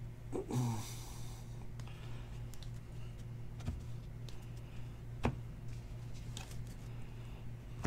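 Trading cards are shuffled and tapped against a table.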